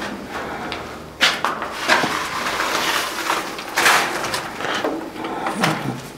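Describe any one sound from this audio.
A board scrapes and clatters on the floor.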